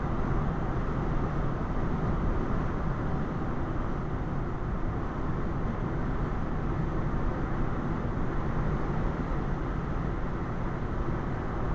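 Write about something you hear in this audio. A car drives steadily along a road, its engine and tyres rumbling from inside the cabin.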